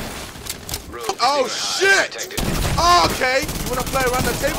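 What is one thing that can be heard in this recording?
A young man laughs and talks with excitement into a microphone.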